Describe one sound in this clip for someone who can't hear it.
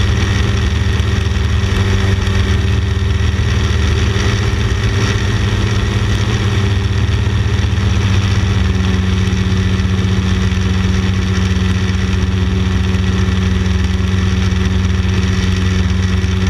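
A microlight's propeller engine drones in flight.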